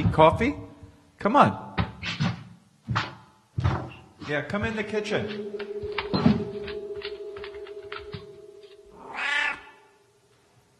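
A man speaks loudly and theatrically in an echoing room.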